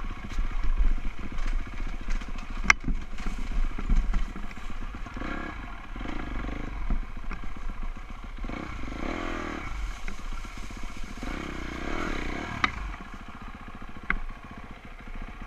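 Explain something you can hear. Tyres crunch over dry leaves and gravel.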